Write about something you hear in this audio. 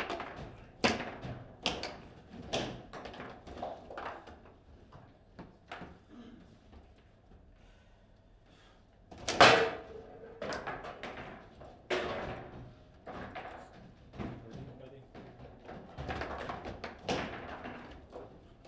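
Table football figures strike and knock a plastic ball around the table.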